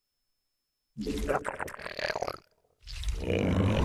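Game sound effects of units clash and crackle loudly.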